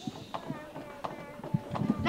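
A small child claps hands.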